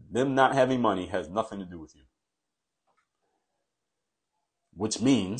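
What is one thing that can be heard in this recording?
A man speaks calmly and close into a microphone, with pauses.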